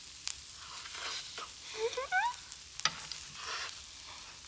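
A middle-aged woman murmurs with delight as she tastes food.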